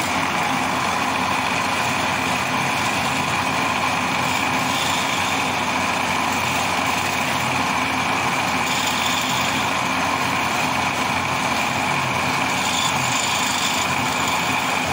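A lathe motor whirs steadily.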